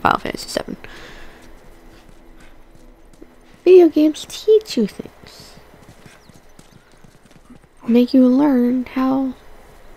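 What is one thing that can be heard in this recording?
Footsteps walk over pavement and then through grass.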